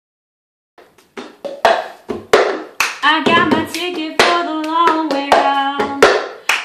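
Plastic cups tap and clap rhythmically on a wooden table.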